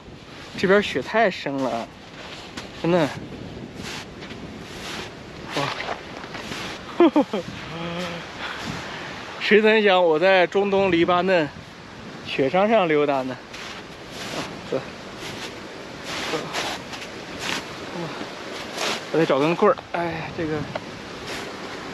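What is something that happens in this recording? A young man talks cheerfully and close by.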